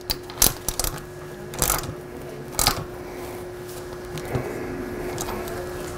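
Metal parts click and knock as a wheel axle is fitted and tightened.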